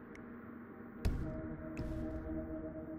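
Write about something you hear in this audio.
Soft electronic menu clicks sound.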